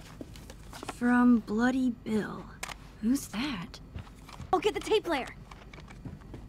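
A girl speaks with curiosity, close by.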